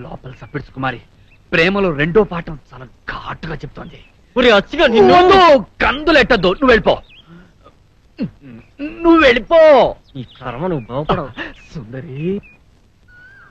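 Another young man answers with animation.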